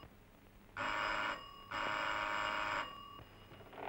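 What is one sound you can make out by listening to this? A doorbell buzzes twice.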